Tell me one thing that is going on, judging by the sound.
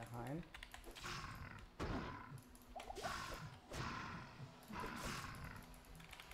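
Magic spells whoosh and crackle again and again during a fight.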